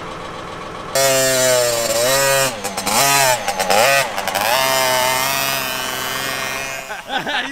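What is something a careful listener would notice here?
A small dirt bike engine revs and whines as it rides off.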